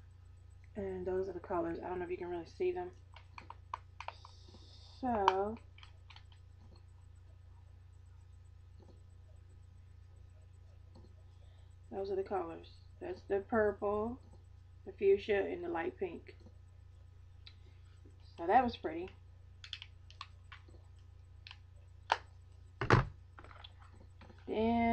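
A woman speaks calmly and closely into a microphone, with long pauses.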